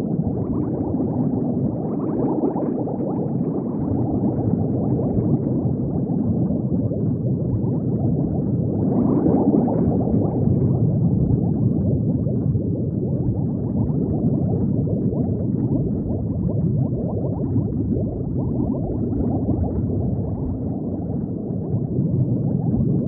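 Bubbles gurgle and bubble steadily underwater.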